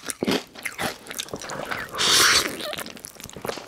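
A man slurps noodles loudly, close to a microphone.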